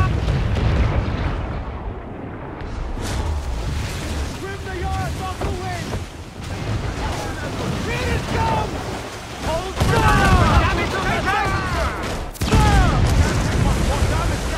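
Waves rush and splash against a sailing ship's hull.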